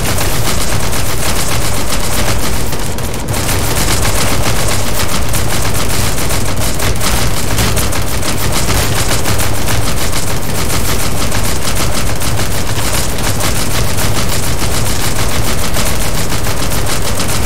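A large fire roars and crackles steadily.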